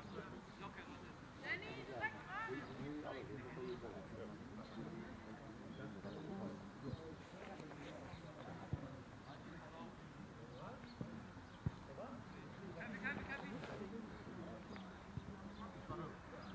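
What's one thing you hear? Young players shout to each other across an open field.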